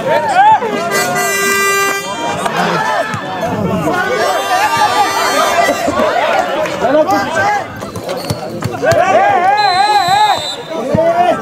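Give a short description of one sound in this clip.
A referee's whistle blows several times.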